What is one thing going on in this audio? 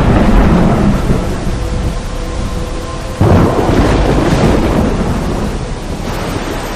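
Floodwater rushes and roars over a weir.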